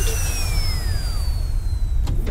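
A toy rocket whistles down in a falling glide.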